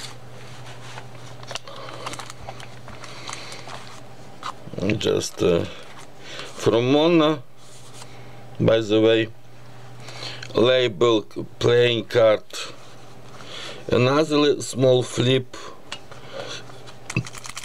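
Paper pages rustle and crinkle as they are turned and handled.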